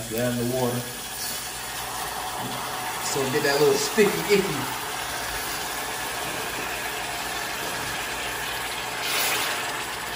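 A sauce simmers and bubbles softly in a pan.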